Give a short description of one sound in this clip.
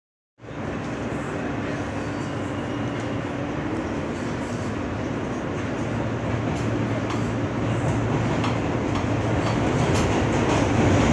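Metal clatters and squeaks as the subway car sways.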